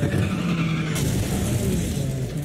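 A car scrapes and bumps against a roadside barrier.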